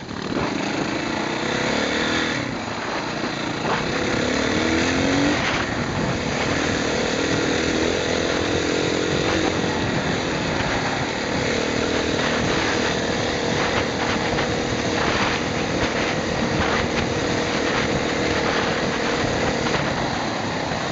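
Tyres rattle and crunch over a rough stony track.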